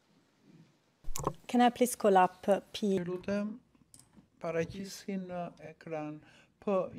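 A woman speaks calmly and clearly into a microphone.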